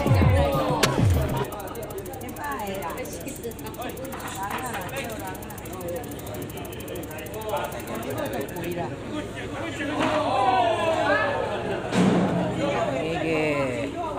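Several men and women talk loudly nearby, in a busy, noisy space.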